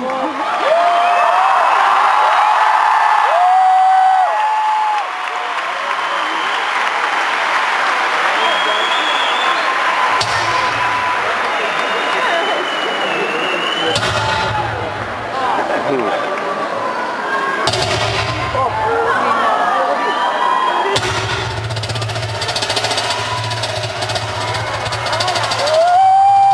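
A young woman sings into a microphone, heard through loudspeakers in a large echoing space.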